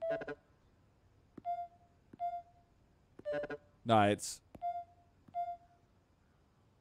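Short electronic beeps chime as buttons are pressed.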